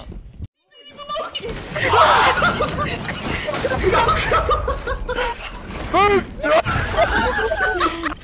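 A young man talks excitedly into a headset microphone.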